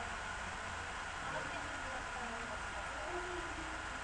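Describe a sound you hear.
Another young woman speaks briefly and calmly, heard through a computer microphone.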